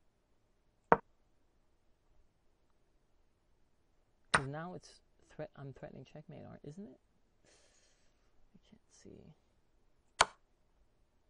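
A chess piece clicks sharply as it is set down.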